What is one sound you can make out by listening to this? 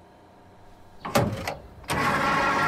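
A fuel nozzle clicks into a car's filler neck.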